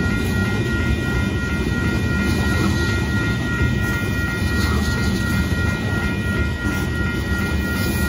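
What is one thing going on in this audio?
A freight train rumbles past on the tracks.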